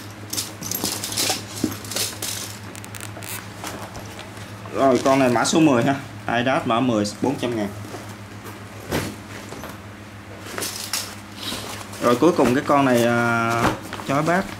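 Nylon bags rustle and crinkle as hands handle them.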